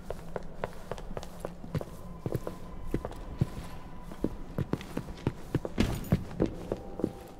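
Footsteps thud steadily on stairs.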